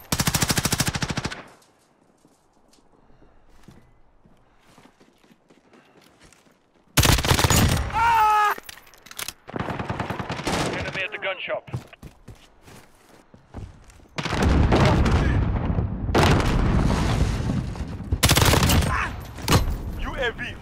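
A rifle fires in rapid bursts, close by.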